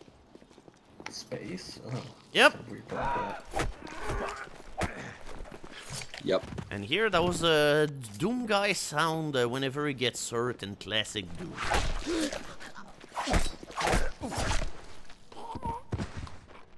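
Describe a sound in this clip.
Bodies thud and scuffle in a close struggle.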